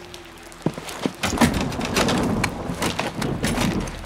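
A door latch clicks.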